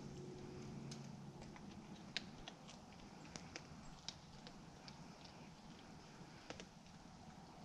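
A rifle clicks and knocks softly close by.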